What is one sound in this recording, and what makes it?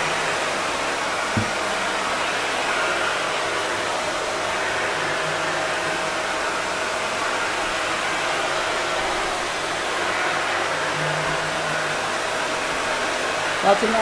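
A vacuum cleaner roars steadily close by.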